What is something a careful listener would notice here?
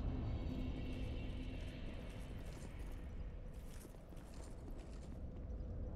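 Heavy armored footsteps thud and clank on the ground.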